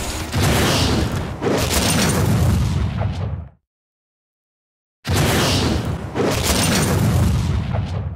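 A fiery explosion roars with a deep rumble.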